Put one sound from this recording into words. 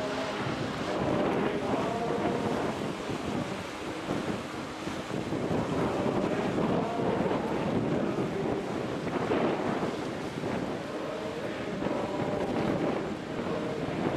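Water rushes and splashes along a passing ship's hull.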